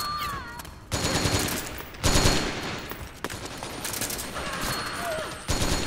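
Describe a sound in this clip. Gunfire bursts out in short loud rattles.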